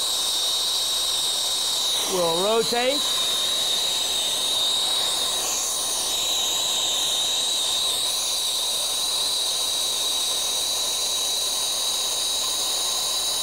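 A gas torch flame hisses and roars steadily.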